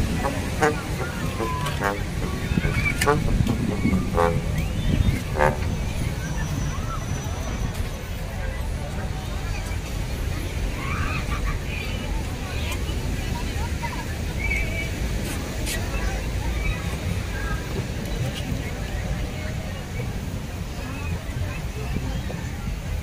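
A crowd of people chatters in the distance.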